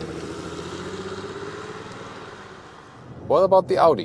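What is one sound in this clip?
A car engine idles outdoors.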